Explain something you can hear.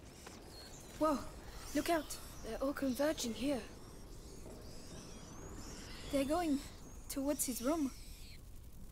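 A young woman speaks in a hushed, tense voice close by.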